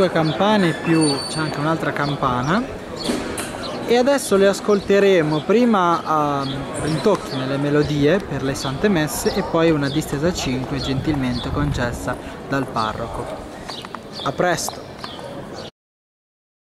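Church bells ring out from a tower in a lively, rapid pattern.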